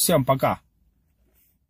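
A young man speaks briefly with animation, close to the microphone.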